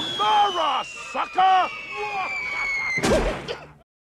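A dog whines and howls.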